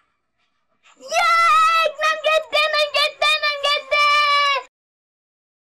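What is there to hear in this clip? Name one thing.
A young boy wails loudly.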